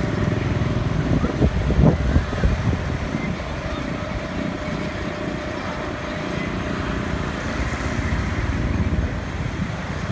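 Motor scooters pass by on a street.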